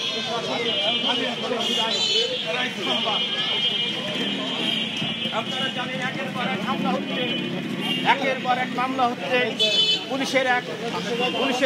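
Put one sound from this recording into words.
A crowd of men talks and calls out nearby, outdoors.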